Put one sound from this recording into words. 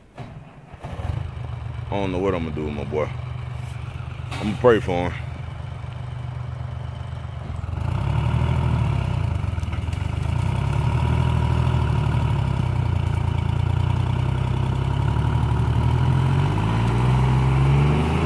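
A heavy diesel engine rumbles steadily nearby.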